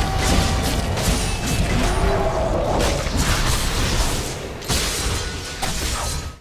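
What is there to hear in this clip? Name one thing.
Game weapons strike with sharp impacts.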